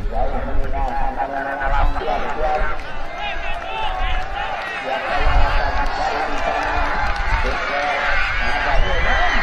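A large crowd outdoors shouts and cheers excitedly.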